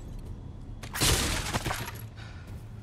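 A wooden crate smashes apart with a loud crack.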